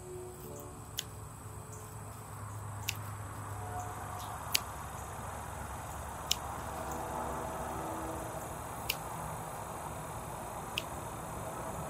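Scissors snip sharply at plant stems, now and then.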